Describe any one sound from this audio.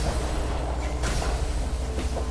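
An explosion bursts with a crackle.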